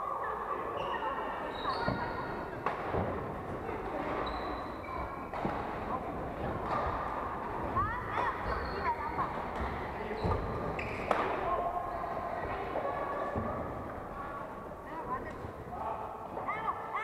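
Rackets smack shuttlecocks in a large echoing hall.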